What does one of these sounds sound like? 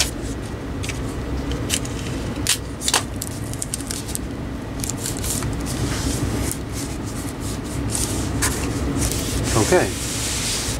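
Hands rustle and scrape against a cardboard box.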